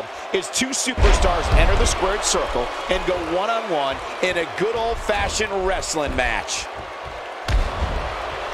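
A body slams onto a wrestling mat with a heavy thud.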